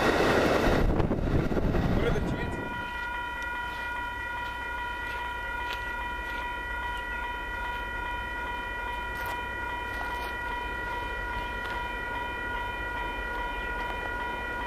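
A distant train rumbles faintly along the tracks.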